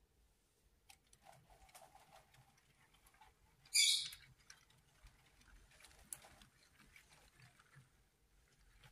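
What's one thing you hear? A toy train's small motor hums softly as it rolls along the track.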